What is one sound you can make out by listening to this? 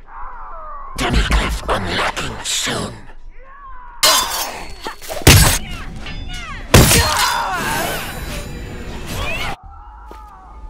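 Game combat sounds clash and crack in bursts.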